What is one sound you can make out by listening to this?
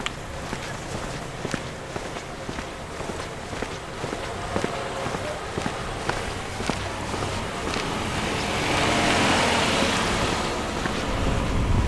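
Footsteps crunch steadily on pavement.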